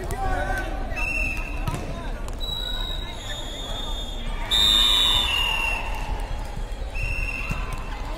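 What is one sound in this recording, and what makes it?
A volleyball is struck with dull thuds.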